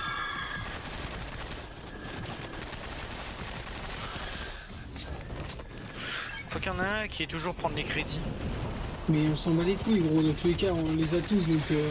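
Game gunfire rattles in rapid bursts.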